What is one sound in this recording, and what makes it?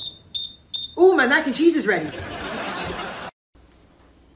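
A teenage boy laughs.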